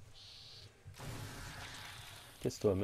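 A gun fires with a loud blast.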